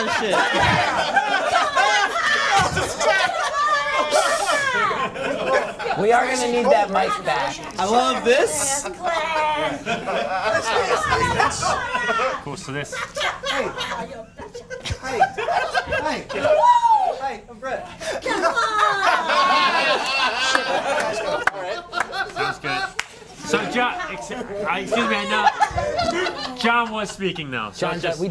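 An audience laughs and cheers.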